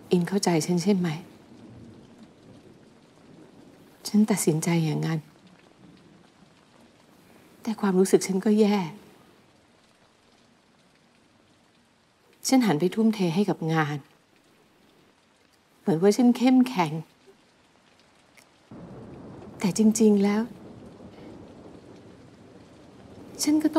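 A woman speaks in short, emotional bursts, heard through a loudspeaker with pauses between lines.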